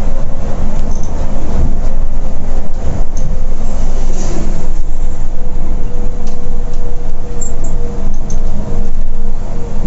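A diesel coach engine drones at highway speed, heard from inside the cab.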